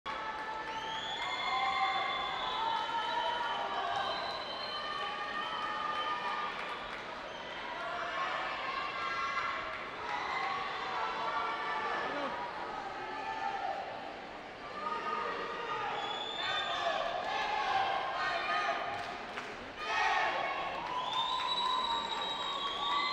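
Loud pop music plays through loudspeakers in a large echoing hall.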